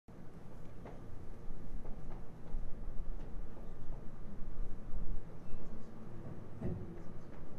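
A man taps a cajon drum with his hands.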